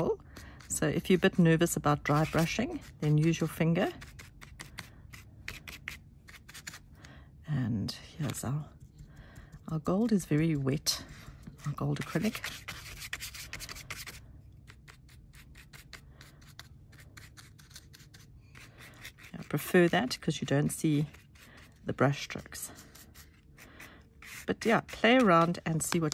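A stiff brush dabs and scrubs softly on paper.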